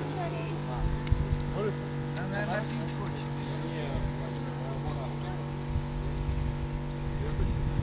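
Water sprays from a hose and splashes on the ground.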